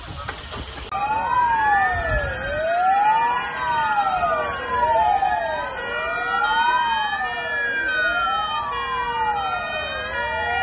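Sirens wail in a rising and falling pattern nearby.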